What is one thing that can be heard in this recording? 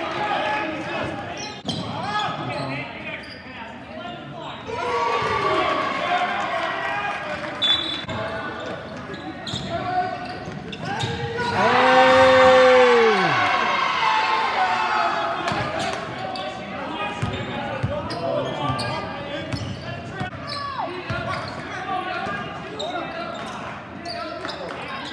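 Spectators talk and shout in an echoing gym.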